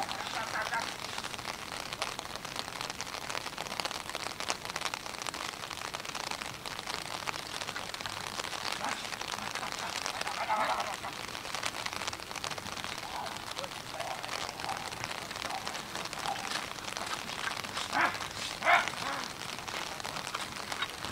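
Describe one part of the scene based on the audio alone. A pony's hooves thud on grass as it trots with a carriage.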